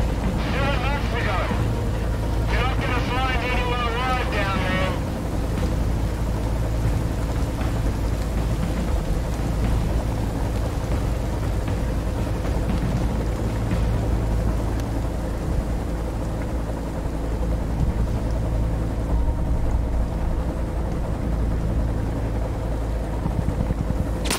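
A helicopter engine drones steadily from inside the cabin.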